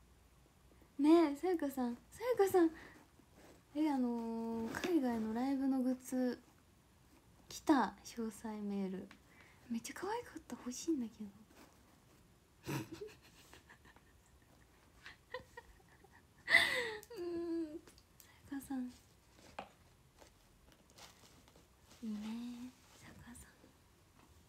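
A young woman talks softly, close to a microphone.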